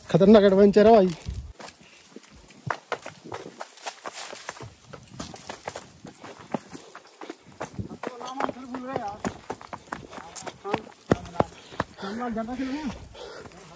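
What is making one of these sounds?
Footsteps crunch on dry grass and gravel.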